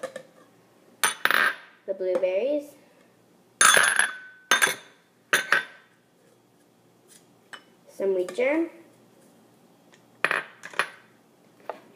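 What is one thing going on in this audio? Berries drop with hollow thuds into a plastic cup.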